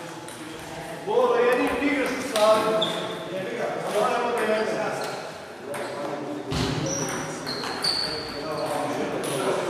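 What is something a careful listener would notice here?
A man talks loudly in an echoing hall.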